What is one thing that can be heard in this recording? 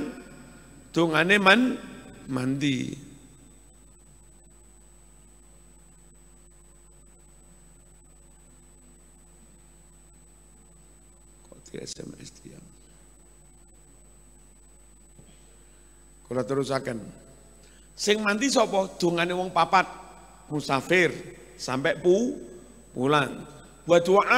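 An elderly man speaks with animation into a microphone, with long pauses.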